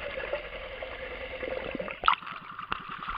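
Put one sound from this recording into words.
Water gurgles and rumbles, heard from underwater.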